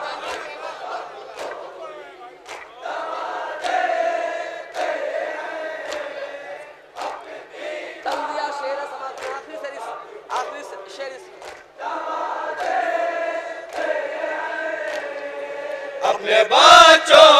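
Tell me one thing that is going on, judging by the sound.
A young man recites with feeling through a microphone, heard over loudspeakers.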